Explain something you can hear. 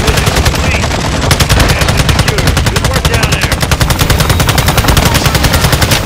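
A helicopter's rotor thumps rapidly and steadily close by.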